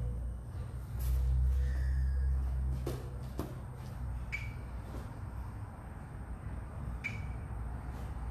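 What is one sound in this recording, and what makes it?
Sneakers scuff on a tiled floor.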